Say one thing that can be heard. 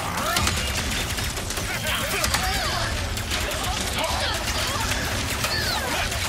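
Electronic zaps whine up and down in pitch.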